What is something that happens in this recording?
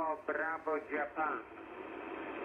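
A man's voice speaks briefly through a crackly radio loudspeaker.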